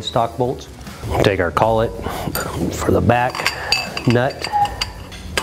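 A middle-aged man speaks calmly and close.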